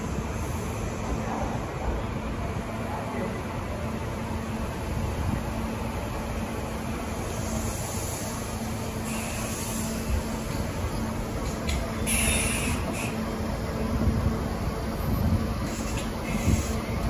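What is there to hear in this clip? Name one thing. An electric train's motor hums steadily.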